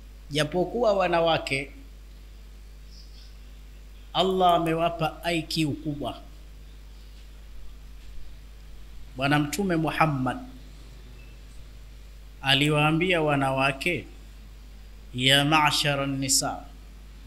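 A man speaks into a microphone in short, calm phrases with pauses between them.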